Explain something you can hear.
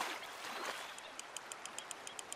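A fishing reel clicks rapidly as line is wound in.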